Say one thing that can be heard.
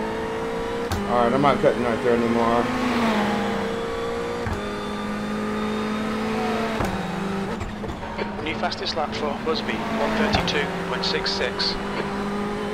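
A man talks now and then, close to a microphone.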